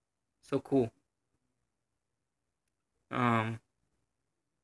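A young man speaks briefly and with animation into a microphone.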